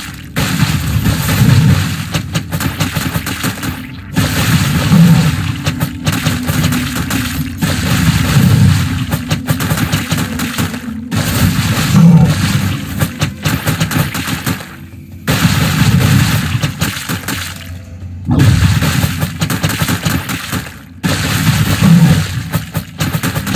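Magic blasts burst with deep rumbling thuds.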